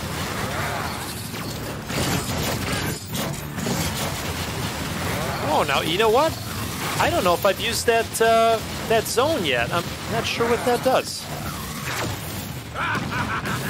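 Laser beams zap and crackle.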